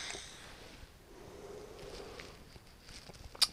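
A man exhales a long breath of vapour.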